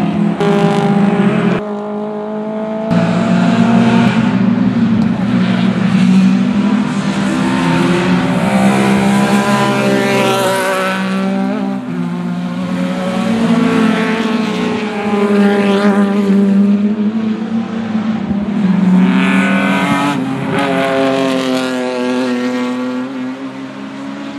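Racing car engines roar loudly and rev up and down as the cars speed past.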